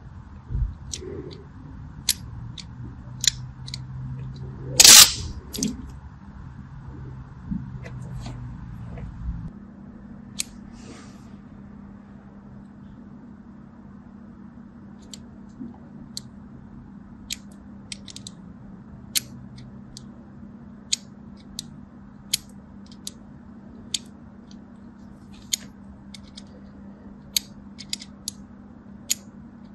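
A blade scores soap with short, crisp scraping clicks.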